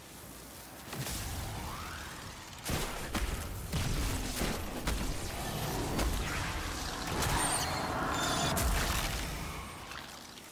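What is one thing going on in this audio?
Loud crackling energy blasts and explosions burst in quick succession.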